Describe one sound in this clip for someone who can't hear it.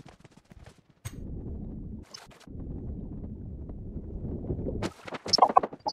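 Water splashes and churns as a game character swims.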